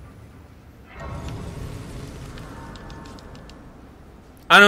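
A soft magical shimmer swells and fades.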